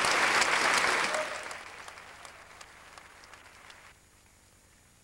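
An audience applauds loudly in a large hall, and the applause fades away.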